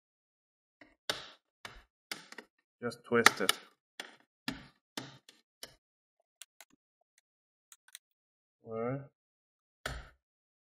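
Plastic clips snap and click as a laptop's bottom cover is pried loose.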